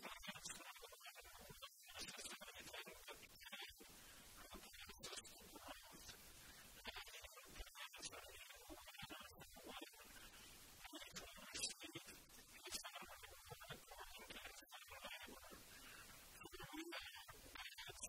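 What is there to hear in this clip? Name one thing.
An older man reads aloud calmly into a microphone.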